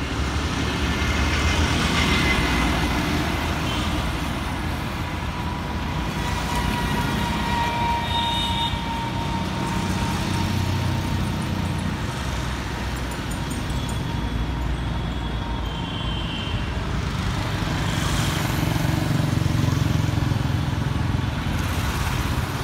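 Steady city traffic rumbles past at night.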